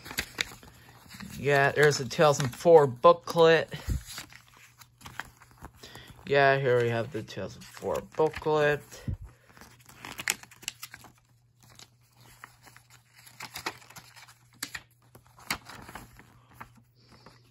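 Paper pages rustle and flip as a booklet is leafed through.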